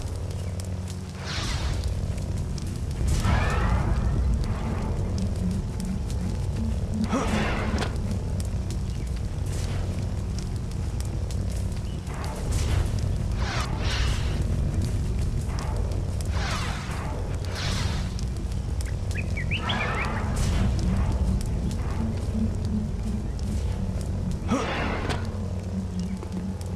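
A lightsaber hums steadily.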